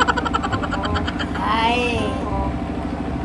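A boy laughs loudly.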